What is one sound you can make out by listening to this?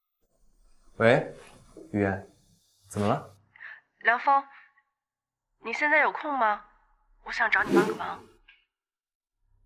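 A young man speaks calmly into a phone, close by.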